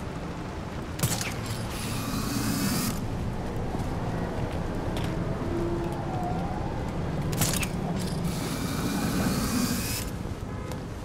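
A grappling line whooshes as a figure is pulled swiftly upward.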